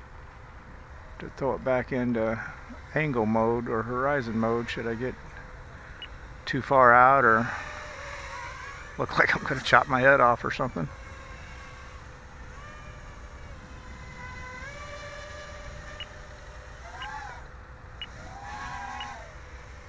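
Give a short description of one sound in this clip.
A small drone buzzes steadily overhead outdoors.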